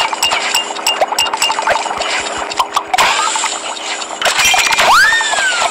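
Cartoon game sound effects chime and pop.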